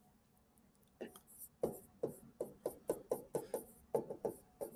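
A stylus taps and scratches on a tablet in quick strokes.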